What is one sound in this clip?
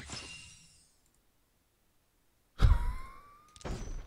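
A game menu button clicks.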